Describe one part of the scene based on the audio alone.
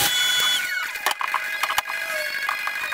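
Wooden pieces knock and clatter against a bench.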